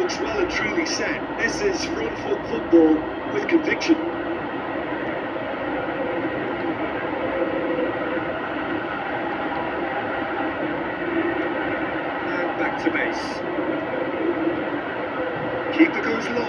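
Controller buttons click softly.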